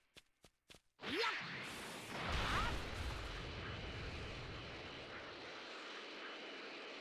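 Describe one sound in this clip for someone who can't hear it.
A loud rushing roar of an energy burst swells and holds steady.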